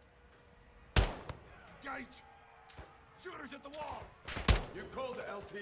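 A rifle fires two sharp, loud shots.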